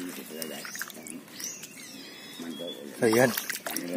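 A hand squelches in wet mud.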